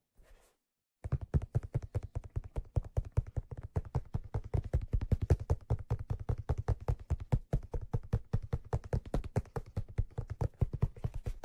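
Fingers tap quickly on a padded leather cushion up close.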